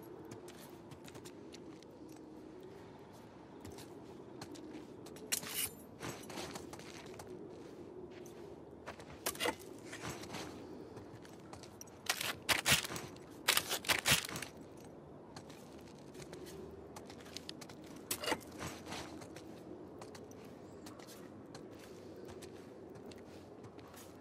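Footsteps crunch and scuff on a debris-strewn floor.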